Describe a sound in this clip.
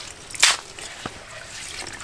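A hand pokes into slushy ice water.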